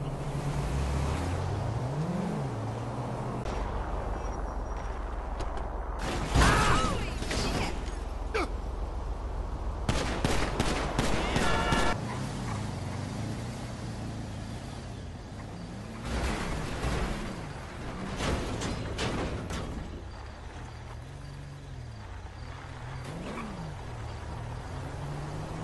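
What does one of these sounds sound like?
Car engines hum and rev as cars drive past.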